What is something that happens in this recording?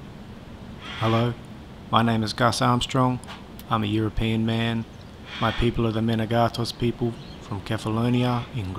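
A man speaks calmly and closely, as if narrating.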